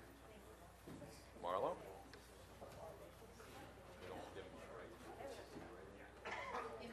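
Several adults talk at once in a room, a murmur of overlapping voices.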